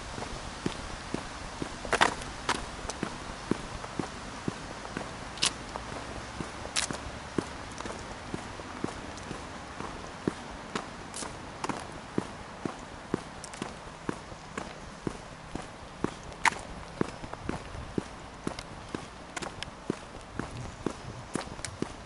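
Footsteps tap steadily along a paved path outdoors.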